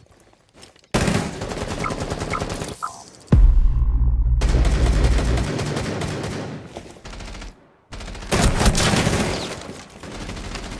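A rifle fires short bursts of shots close by.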